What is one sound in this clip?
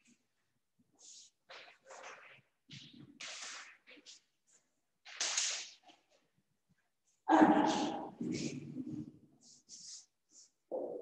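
A young woman speaks calmly in a slightly echoing room.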